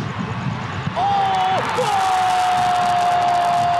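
A referee's whistle blows a long blast.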